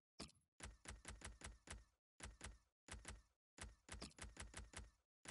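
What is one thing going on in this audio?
Short electronic menu clicks tick in quick bursts.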